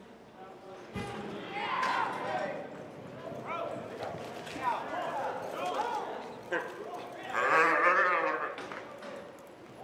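Men shout and whoop encouragement from the stands.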